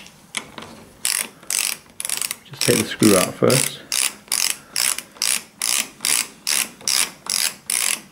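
A screwdriver turns a screw in metal with rhythmic rasping strokes.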